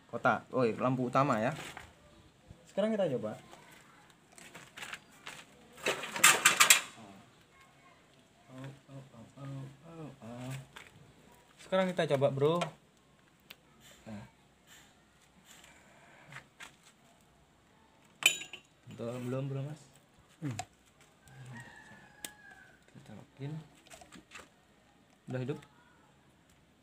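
Plastic and metal parts click and rattle as they are handled.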